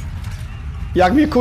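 A man speaks close into a microphone.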